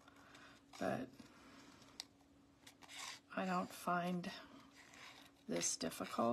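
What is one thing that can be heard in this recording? Small scissors snip through thin card.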